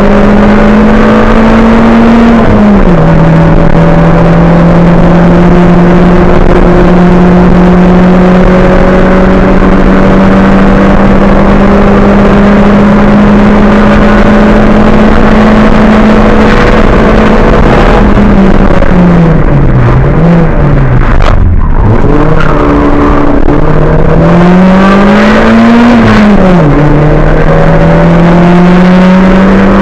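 Tyres rumble on the tarmac road.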